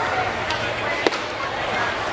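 A pitched ball pops sharply into a catcher's mitt.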